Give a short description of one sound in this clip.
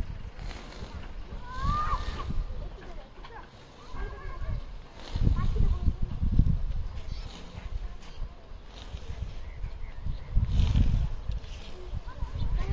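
Wind gusts and buffets loudly outdoors.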